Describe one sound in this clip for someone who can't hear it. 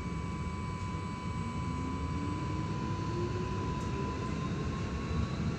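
A tram's electric motor whines, rising in pitch as it speeds up.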